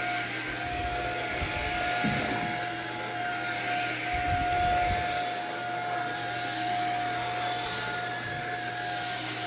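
A vacuum head brushes over thick carpet.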